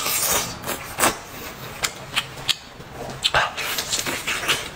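Meat crunches as a young man bites into it.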